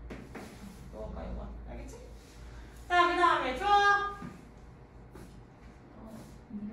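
A young woman speaks with animation through a mask.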